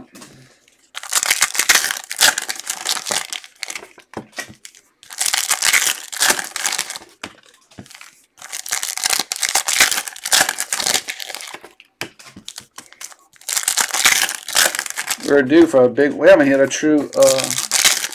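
Plastic card wrappers crinkle and rustle as they are torn open.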